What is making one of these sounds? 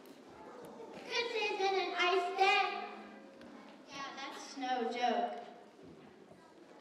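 A young girl speaks clearly into a microphone.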